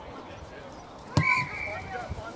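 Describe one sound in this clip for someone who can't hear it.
A boot thumps a ball with a sharp kick.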